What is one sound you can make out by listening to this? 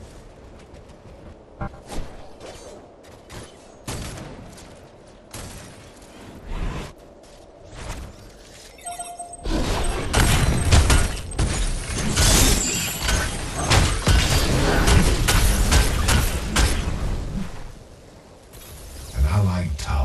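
Video game combat effects crash and burst.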